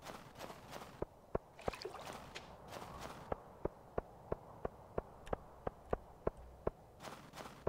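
Footsteps tap steadily on a stone path.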